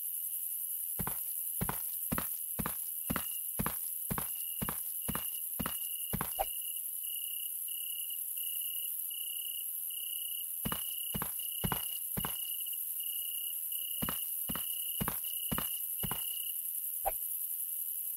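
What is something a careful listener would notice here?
Footsteps tread at an even pace on hard ground, stopping and starting.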